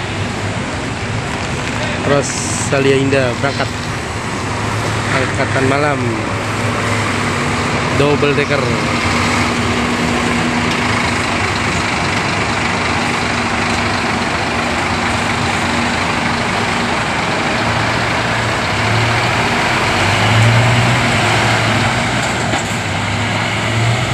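A large bus engine rumbles steadily as the bus pulls slowly away.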